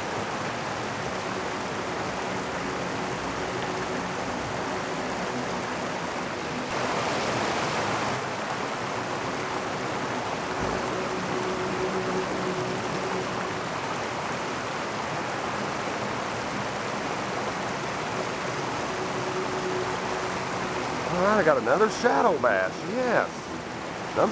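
Water rushes and burbles steadily outdoors.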